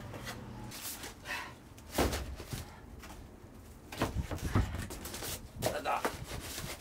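Cardboard rustles and crackles as a box is handled.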